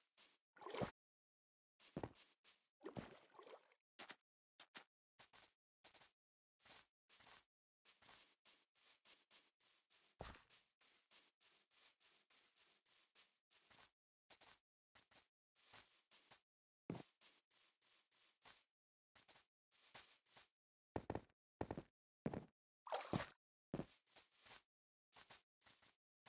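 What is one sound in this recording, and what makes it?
Footsteps patter on grass.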